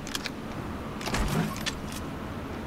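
A metal container lid opens with a clank.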